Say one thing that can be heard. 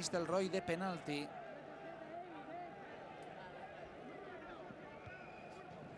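A large stadium crowd chants and cheers in the open air.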